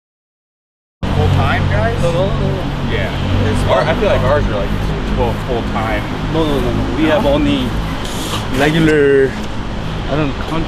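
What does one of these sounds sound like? Two men talk as they walk outdoors.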